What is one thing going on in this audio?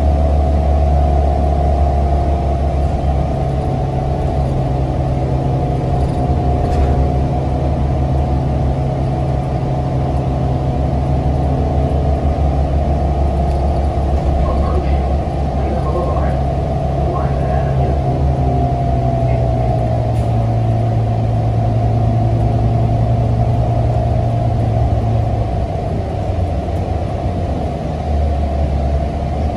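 A bus interior rattles and creaks over the road.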